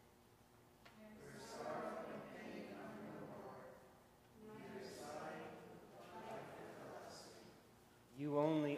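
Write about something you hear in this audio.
A congregation answers together in unison.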